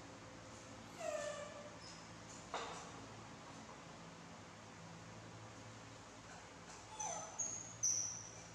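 A young monkey squeals briefly.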